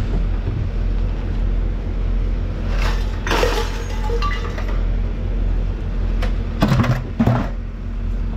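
A plastic bucket knocks and rattles.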